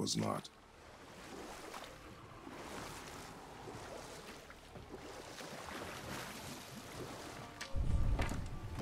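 Oars splash and dip in water.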